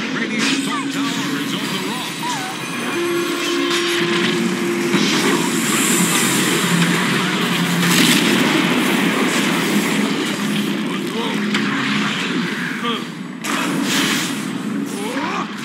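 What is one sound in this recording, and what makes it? Game battle effects clash and explode.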